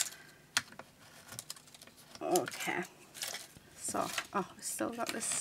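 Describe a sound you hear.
Paper rustles softly under a hand.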